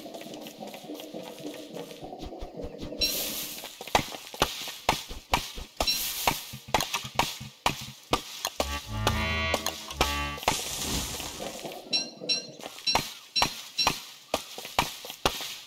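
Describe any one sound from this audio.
Video game footsteps patter over ground.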